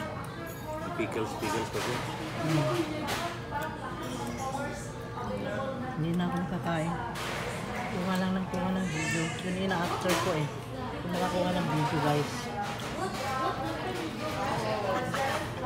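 Chopsticks clink against dishes.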